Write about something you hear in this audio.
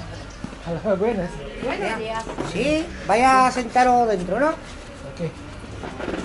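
A man and a woman talk close by.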